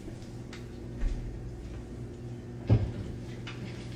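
Footsteps thump across the floor.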